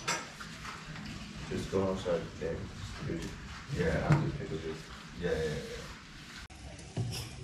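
A young man talks casually across a table.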